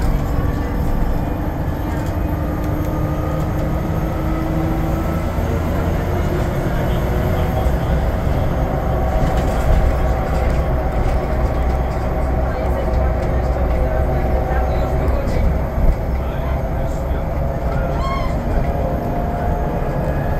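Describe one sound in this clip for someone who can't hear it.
A bus engine hums and drones steadily from inside the bus.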